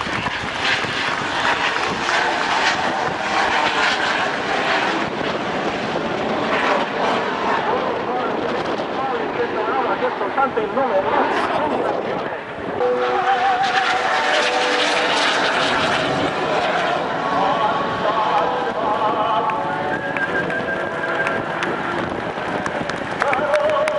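A jet plane engine roars overhead.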